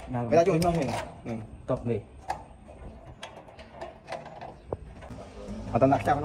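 Metal lock parts click and clack as they are fitted into a door.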